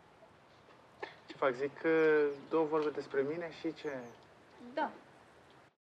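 A man speaks hesitantly into a close microphone.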